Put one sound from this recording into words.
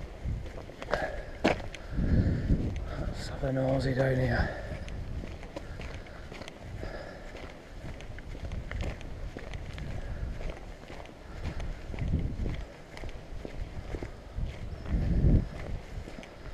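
Footsteps crunch slowly on a gravel path.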